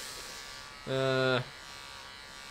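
Electric hair clippers buzz.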